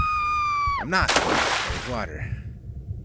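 Water splashes loudly as something plunges in.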